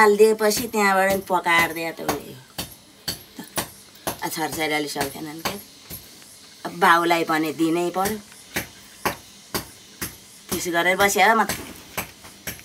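An elderly woman speaks slowly and emotionally, close by.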